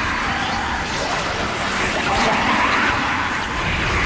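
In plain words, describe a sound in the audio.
Creatures snarl and growl nearby.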